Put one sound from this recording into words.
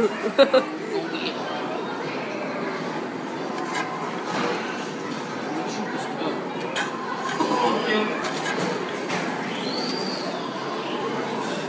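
An arcade game plays electronic music and effects.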